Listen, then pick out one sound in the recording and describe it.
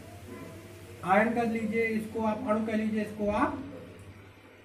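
A man speaks in a clear, lecturing voice close by.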